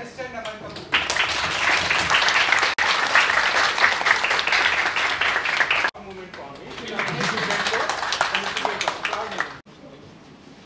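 A crowd claps and cheers loudly in a room.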